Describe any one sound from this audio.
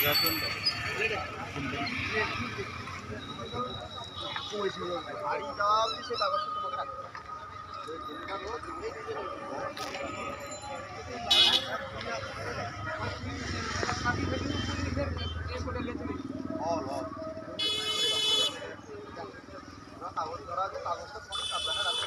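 Several men talk and call out to each other outdoors.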